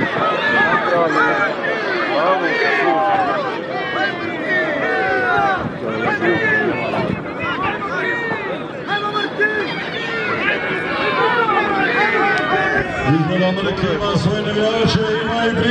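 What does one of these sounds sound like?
A large outdoor crowd of men and women chatters and shouts all around.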